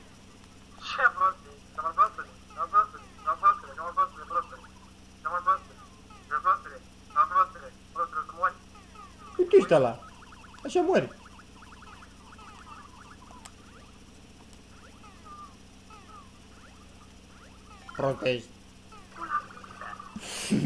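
Short electronic game bleeps chirp in quick bursts.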